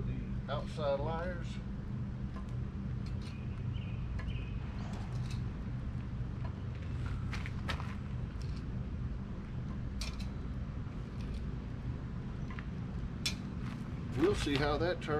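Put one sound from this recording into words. Metal clinks and scrapes against a pot.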